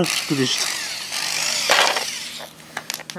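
A cordless impact driver whirs and rattles.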